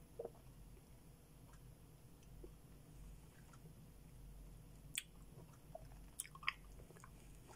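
A middle-aged woman chews juicy melon close to the microphone with wet smacking sounds.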